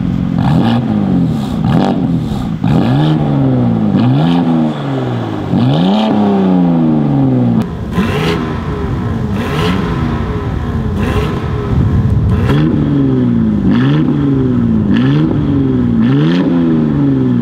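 A sports car's engine revs hard through loud exhaust pipes, rising and falling again and again.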